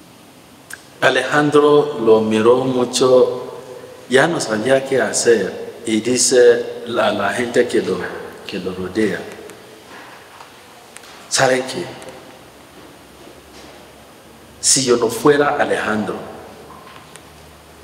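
A man speaks calmly into a microphone in a reverberant room.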